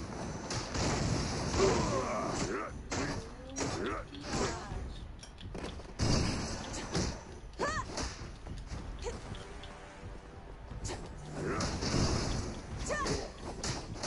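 Swords clash and whoosh in fast combat.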